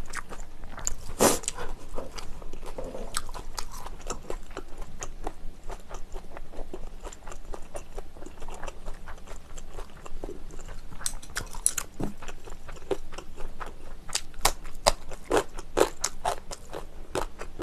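A young woman chews food with wet smacking sounds close to a microphone.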